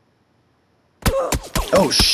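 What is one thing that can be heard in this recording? Gunshots crack close by in a rapid burst.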